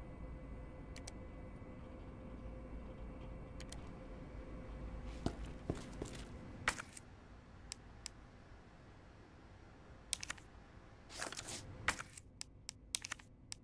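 Short soft menu clicks sound now and then.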